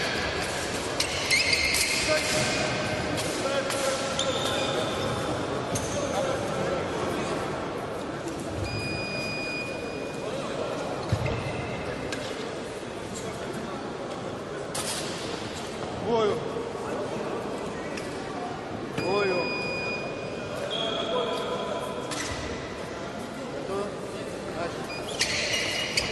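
Shoes squeak on a hard floor in a large echoing hall.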